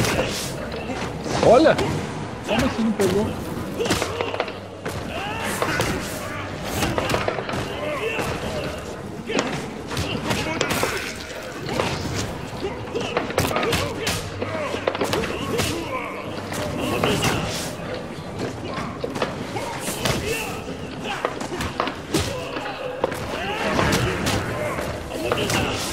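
Punches and kicks land with sharp thuds and smacks.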